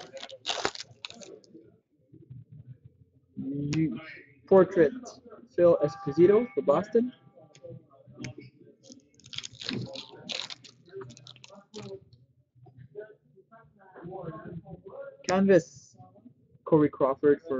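Trading cards rustle and flick as hands sort through them.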